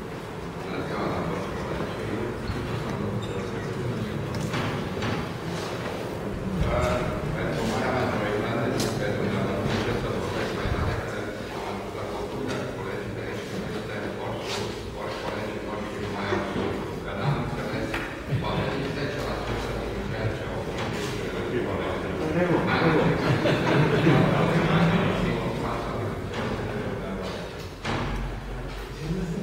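Many people murmur and talk quietly in an audience.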